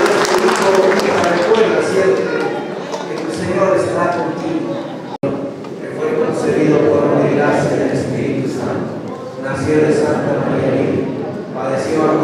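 A large crowd sings together in an echoing hall.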